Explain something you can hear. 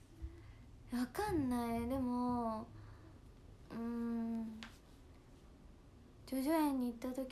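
A young woman hums long, drawn-out notes close by.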